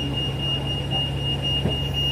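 A bus rolls along the road.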